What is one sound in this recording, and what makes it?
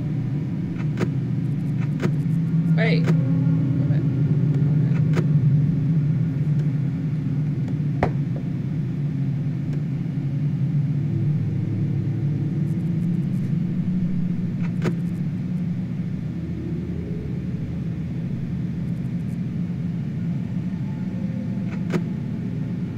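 Short mechanical clicks sound now and then as a monitor flips up and down.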